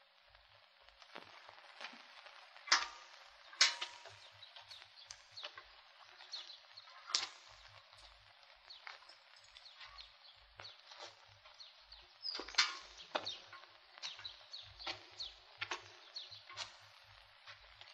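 Footsteps crunch slowly over dry, stony ground.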